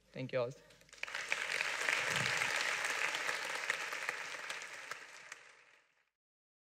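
An audience applauds loudly, then the clapping fades away.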